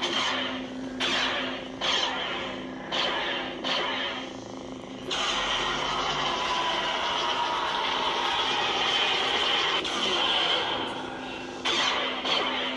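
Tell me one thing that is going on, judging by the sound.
A toy lightsaber crackles with sudden clashing bursts.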